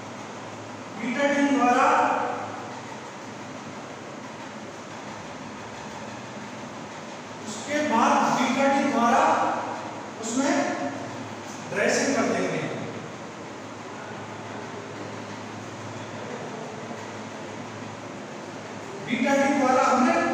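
A young man lectures through a lapel microphone.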